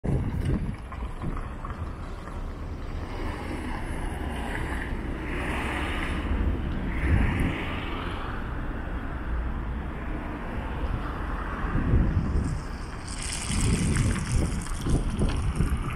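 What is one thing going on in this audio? Traffic hums steadily nearby.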